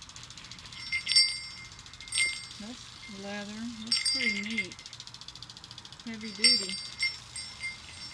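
Sleigh bells jingle as they are shaken.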